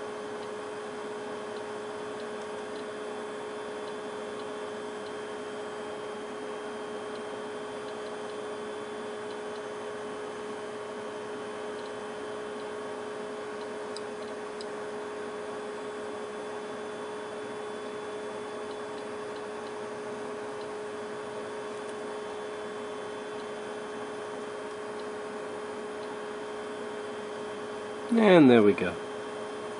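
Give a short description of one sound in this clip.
A small electric device hums steadily nearby.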